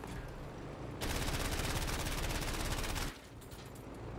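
A machine gun fires a long, rapid burst.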